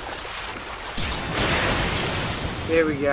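A large fish bursts out of the water with a loud splash.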